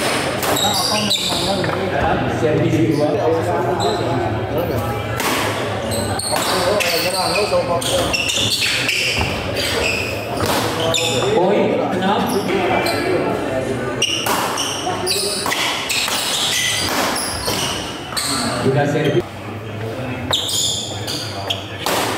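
Shoes squeak and thump on a wooden court.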